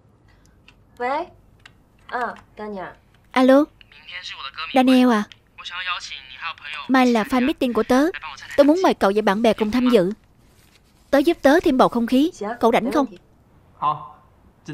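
A young woman talks into a phone, calmly and then cheerfully.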